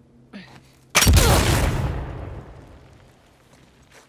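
An object smashes with a loud burst, followed by a hiss that fades out.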